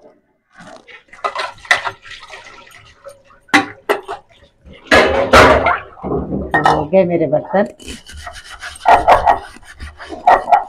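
Water runs and splashes into a sink.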